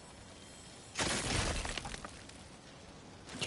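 A crystal cracks and crunches.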